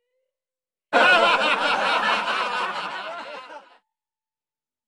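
A young woman laughs and cheers loudly close by.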